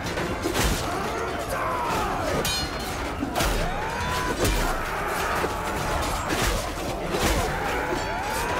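Arrows whoosh through the air.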